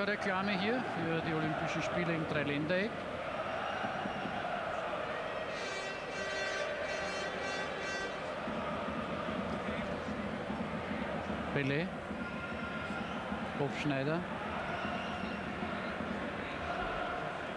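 A large crowd murmurs and chants in an open stadium.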